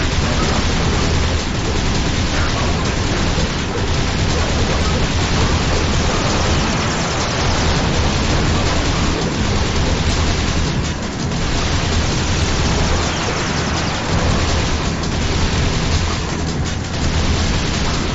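Jet engines roar steadily as a hover vehicle races along.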